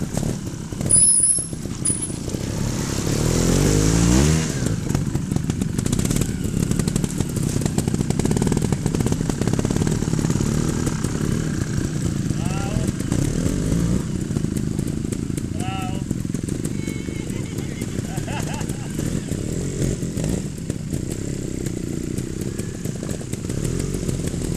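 A motorcycle engine revs and putters.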